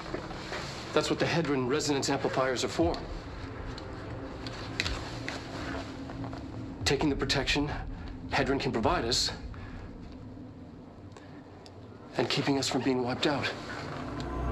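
A middle-aged man talks calmly through a loudspeaker.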